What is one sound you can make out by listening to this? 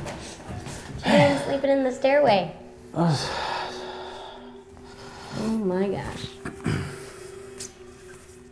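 A young woman speaks and laughs softly nearby.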